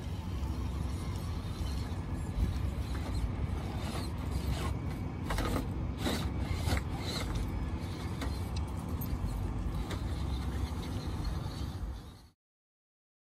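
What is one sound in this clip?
A small electric motor whirs as a toy truck crawls.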